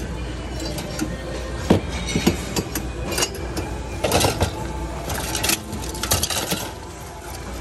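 Metal and plastic objects clatter and knock together.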